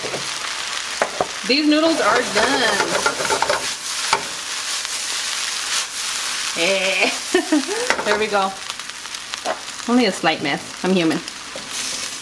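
Noodles sizzle loudly in a hot pan.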